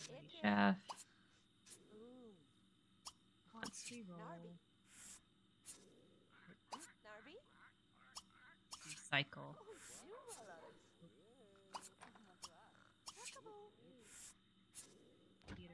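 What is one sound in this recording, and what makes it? A young woman talks casually into a nearby microphone.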